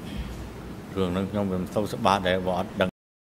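A middle-aged man speaks steadily into a microphone.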